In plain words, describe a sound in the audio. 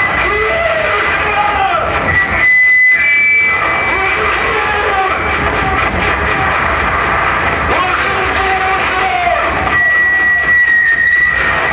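Experimental electronic noise music plays loud, with piercing whistling tones and warbling sweeps.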